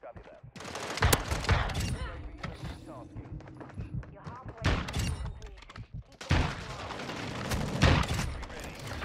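Gunshots crack loudly, one after another.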